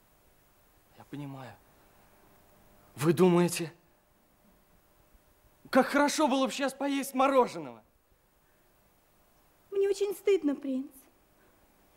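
A young man talks with animation, close by.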